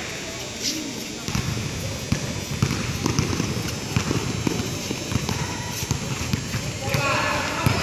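Sneakers squeak and thump on a hard court.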